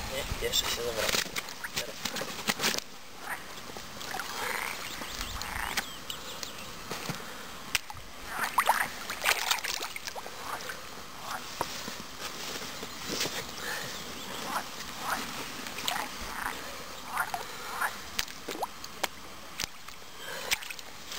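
Water splashes and trickles close by.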